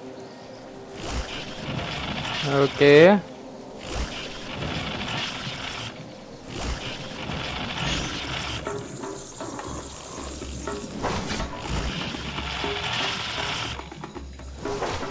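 Electric zaps crackle loudly.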